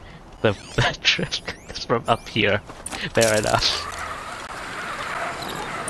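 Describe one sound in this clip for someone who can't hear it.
A pulley whirs along a taut rope.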